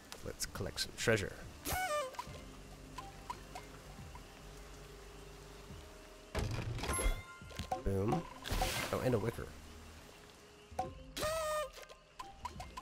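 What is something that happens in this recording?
Treasure chests burst open with bright, sparkling chimes.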